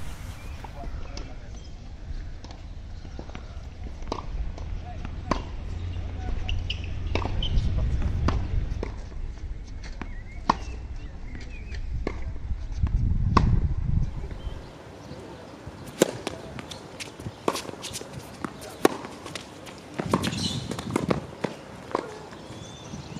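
Tennis balls are struck sharply with rackets, back and forth.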